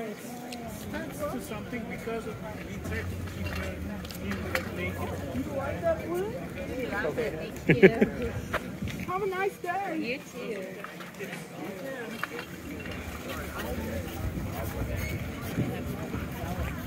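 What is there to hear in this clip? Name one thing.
A crowd of people chatter and talk outdoors around the listener.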